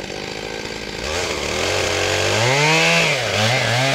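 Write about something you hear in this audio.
A chainsaw revs up and whines as it cuts through a log.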